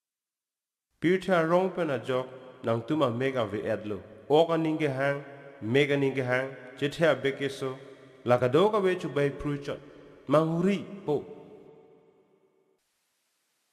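A man speaks slowly and with feeling, close by.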